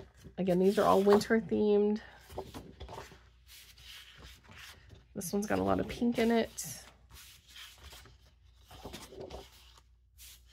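Sheets of paper rustle and slide as they are handled.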